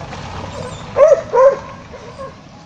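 A dog barks loudly nearby, a few times.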